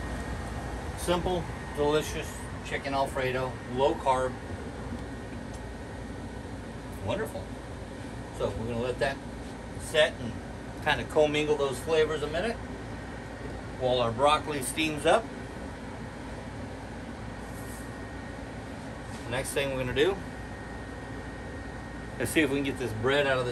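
A middle-aged man talks with animation, close by.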